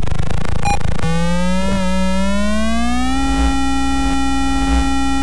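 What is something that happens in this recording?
A retro video game car engine buzzes and rises steadily in pitch.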